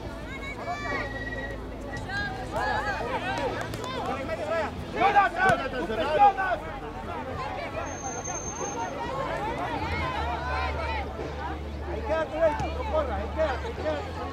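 Spectators cheer and shout close by, outdoors.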